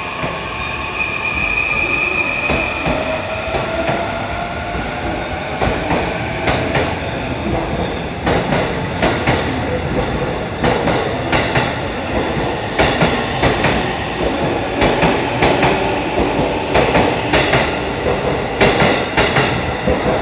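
A train rushes past at speed, its wheels rumbling and clattering over the rail joints.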